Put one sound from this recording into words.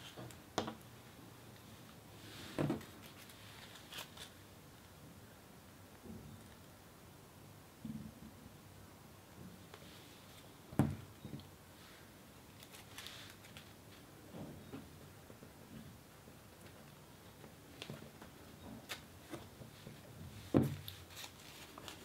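Crepe paper rustles and crinkles as hands crumple it.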